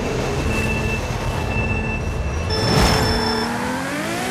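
A sports car engine idles with a deep rumble.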